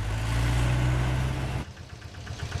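A small truck engine rumbles steadily.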